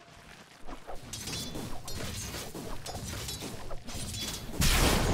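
Game spell effects and blows crackle and thump during a fight.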